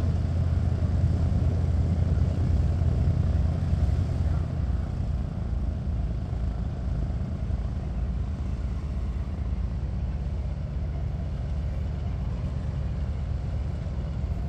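Twin piston engines of a propeller aircraft rumble and drone steadily nearby.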